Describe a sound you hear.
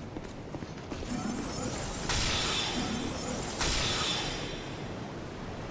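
A magical shimmer swells and rings out.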